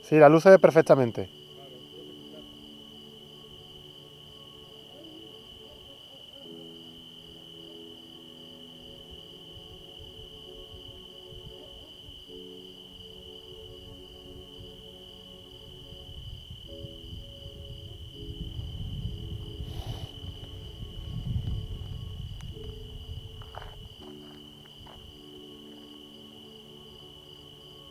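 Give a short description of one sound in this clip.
A car engine hums steadily nearby.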